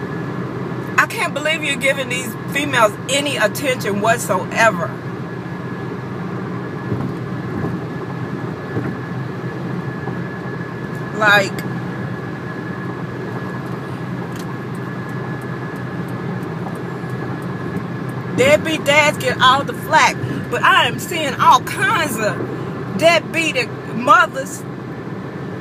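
A woman talks close by, with feeling, in bursts.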